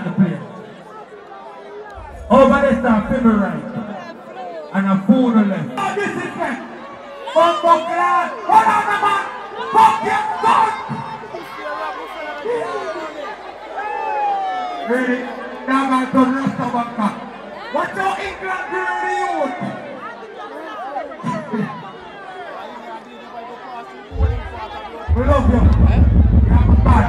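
A man raps loudly into a microphone over loudspeakers in a large venue.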